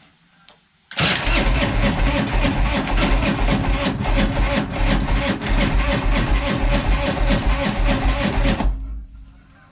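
A motorcycle engine starts and roars loudly, then cuts off.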